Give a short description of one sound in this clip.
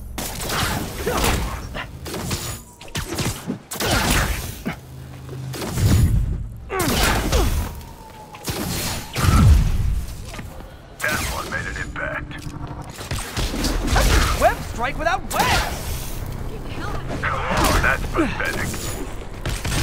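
Punches and kicks thud in a brawl.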